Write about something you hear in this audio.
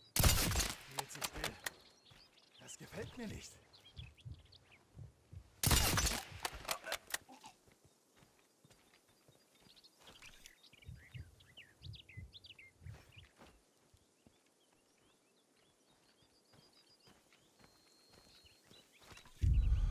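Footsteps crunch softly on gravel.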